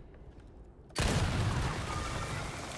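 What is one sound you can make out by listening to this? A barrel explodes with a loud, booming blast.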